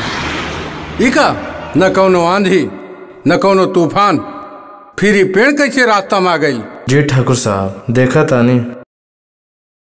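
An elderly man talks with animation close by.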